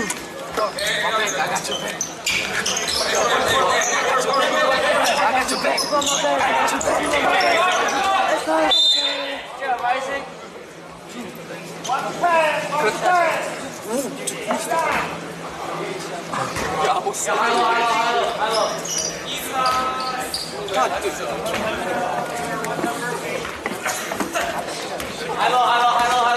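A crowd of spectators talks and cheers loudly in an echoing gym.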